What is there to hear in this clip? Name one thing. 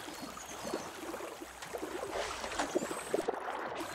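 Water splashes softly as a small float drops in.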